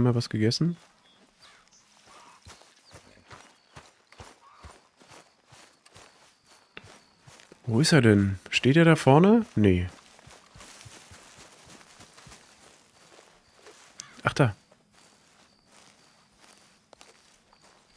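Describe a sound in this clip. Footsteps swish through tall grass.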